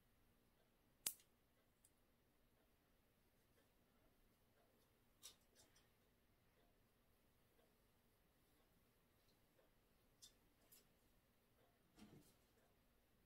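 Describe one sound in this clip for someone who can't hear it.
A plastic hair clip clicks as it is handled.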